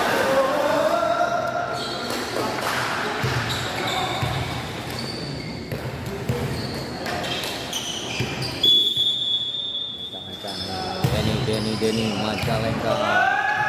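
Sneakers squeak sharply on an indoor court, echoing in a large hall.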